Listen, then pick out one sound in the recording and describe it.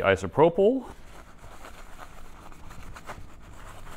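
A cloth rubs and wipes against a hard surface.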